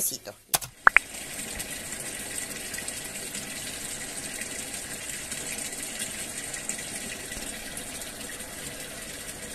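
Water gushes and splashes into a washing machine drum.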